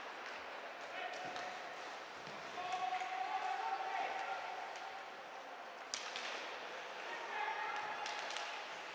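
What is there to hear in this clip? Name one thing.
Spectators shout and call out in the stands.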